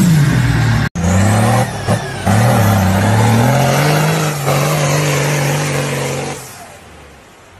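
A truck engine revs hard, rising and falling in pitch.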